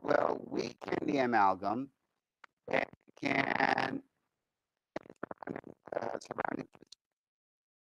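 A man speaks calmly through a microphone in an online call.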